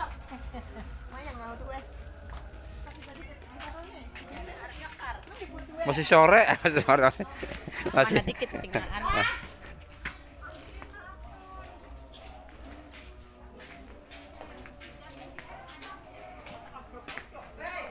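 Women talk and laugh close by.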